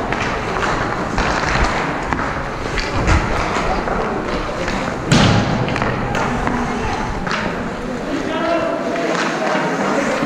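Skate blades scrape and carve across ice.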